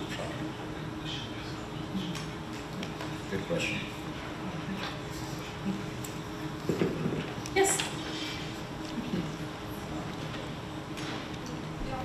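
An elderly man speaks calmly into a microphone in a large hall.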